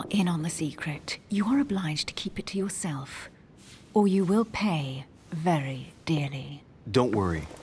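A woman speaks softly and intimately, close by.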